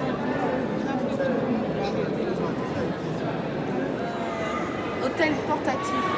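A crowd of people chatters in the background indoors.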